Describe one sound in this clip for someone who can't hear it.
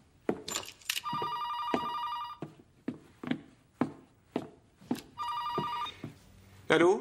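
A phone beeps as buttons are pressed.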